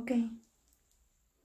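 A woman speaks briefly, close by.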